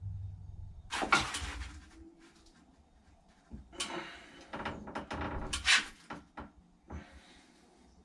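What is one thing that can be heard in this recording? A metal ladder clanks and rattles as a man climbs it.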